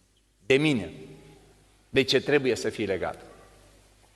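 An elderly man speaks calmly into a microphone in a reverberant hall.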